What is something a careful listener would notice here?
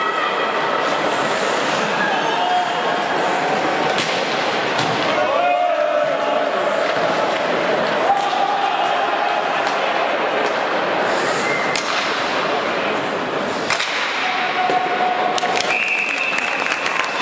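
Hockey sticks clack sharply against a puck.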